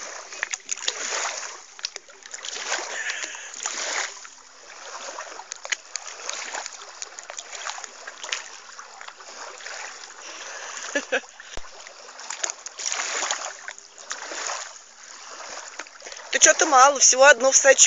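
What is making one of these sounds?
Water splashes and sloshes nearby.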